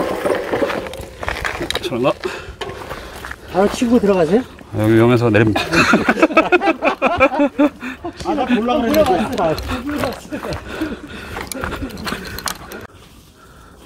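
Bicycle parts rattle over bumps.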